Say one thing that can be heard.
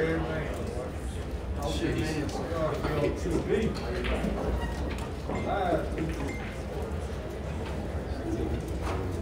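Several men chat quietly nearby.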